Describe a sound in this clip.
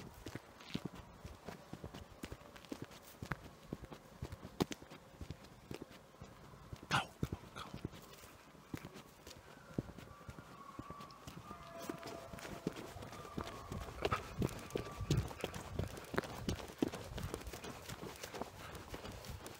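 Footsteps thump steadily on grass at a running pace.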